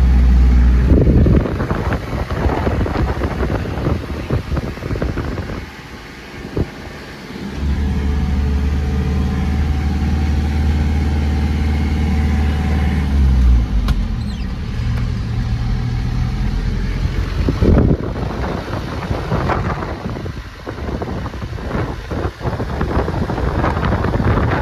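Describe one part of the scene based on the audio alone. Wind rushes past an open window.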